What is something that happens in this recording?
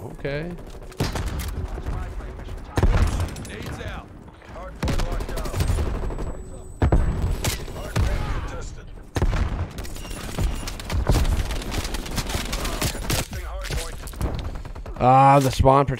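Rapid gunfire bursts crack out in quick runs.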